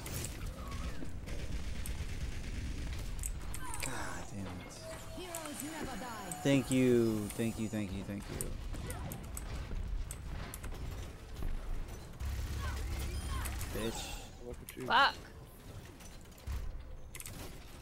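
Gunfire rattles from a game.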